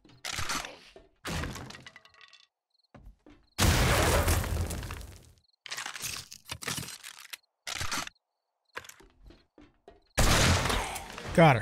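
A club thuds repeatedly against a body.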